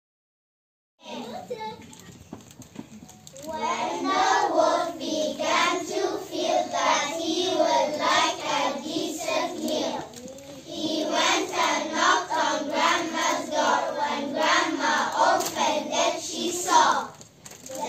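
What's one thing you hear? A group of young children sings together in a room.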